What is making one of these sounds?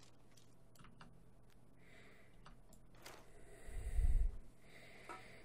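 A rifle is drawn and readied with metallic clicks.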